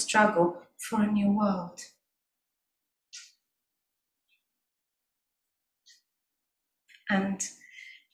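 A woman sings into a microphone close by, with pauses between phrases.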